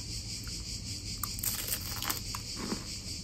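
A young woman bites into crispy food close by.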